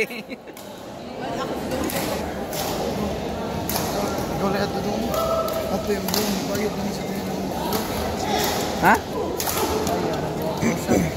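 A crowd of spectators chatters in the background.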